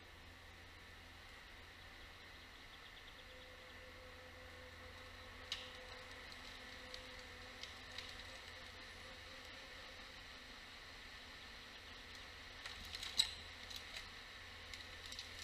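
A forestry harvester's engine hums steadily in the distance.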